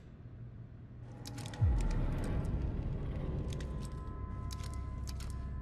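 A gun clicks as weapons are switched.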